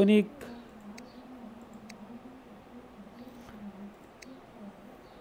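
Game menu selections click softly.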